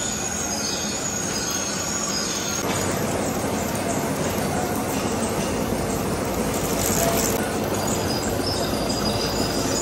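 A lathe hums steadily as it turns a heavy metal workpiece.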